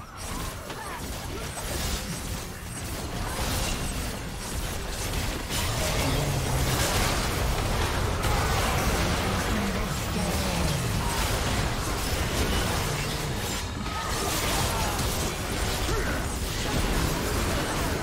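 Spell effects and attacks clash and burst in a video game battle.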